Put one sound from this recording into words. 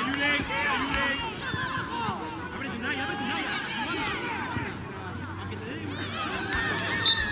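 Young boys shout and call out to each other across an outdoor football pitch.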